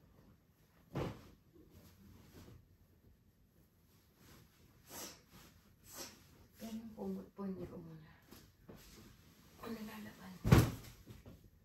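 Pillows thump softly onto a bed.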